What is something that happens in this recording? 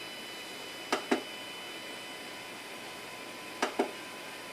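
A printer's control knob clicks a few times.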